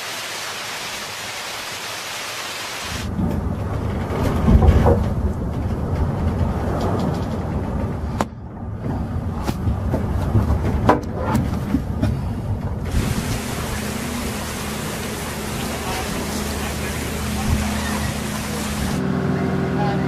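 Wind roars and rain lashes down in a storm.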